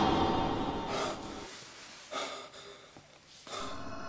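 A young man speaks in a frightened, breathless voice close by.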